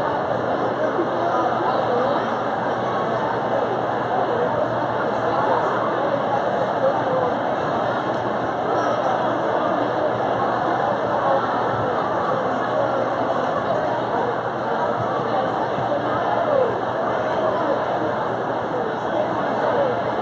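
A large crowd chatters loudly in a big echoing hall.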